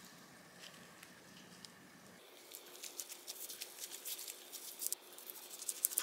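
Gloved hands press and roll a seaweed roll with soft crinkling rustles.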